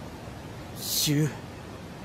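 A young man speaks softly and briefly.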